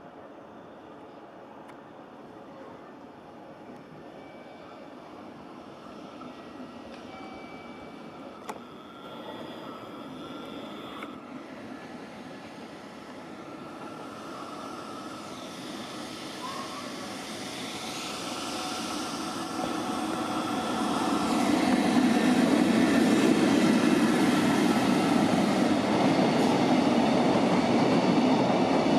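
A freight train rumbles along the tracks, growing louder as it approaches and passes close by.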